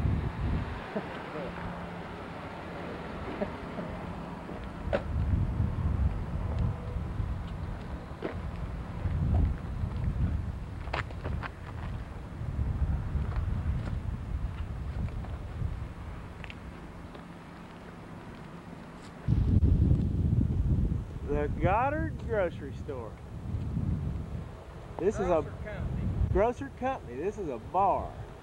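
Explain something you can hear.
Wind rumbles and buffets loudly outdoors.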